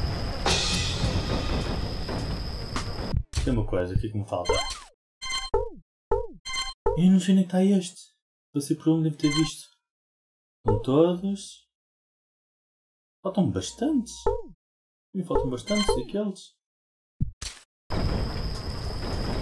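Busy electronic game music and effects play.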